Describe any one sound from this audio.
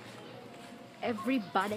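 A young woman speaks loudly and animatedly close to the microphone.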